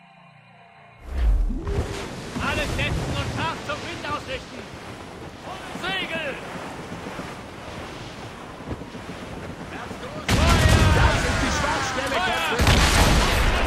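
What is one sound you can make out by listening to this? Wind blows across the open sea.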